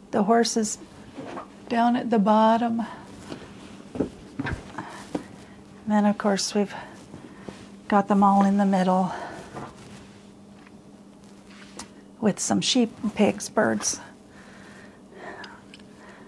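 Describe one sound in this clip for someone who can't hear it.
Fabric rustles softly as hands smooth it flat.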